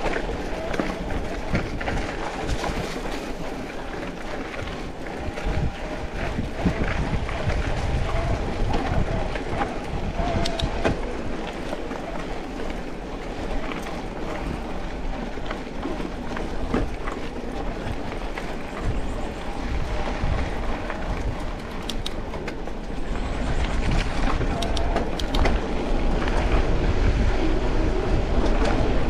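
A bicycle's chain and frame clatter over bumps.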